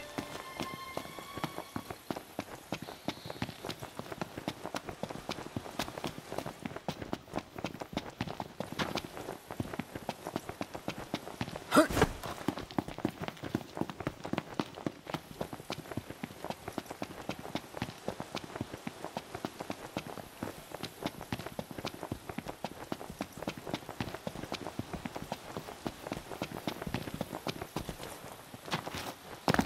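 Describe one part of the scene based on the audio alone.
Footsteps run quickly over dry ground and grass.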